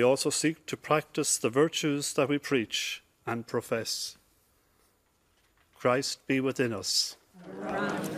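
A middle-aged man reads out calmly into a microphone.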